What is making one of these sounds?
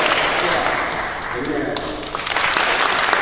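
A men's choir sings to a close in a large hall.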